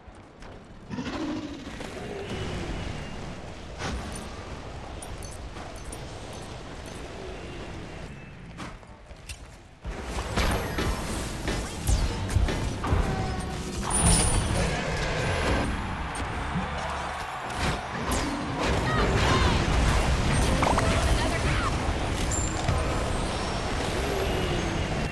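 Video game combat effects clash and burst with loud magic blasts.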